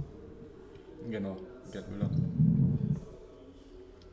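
A young man speaks briefly and calmly close to a microphone.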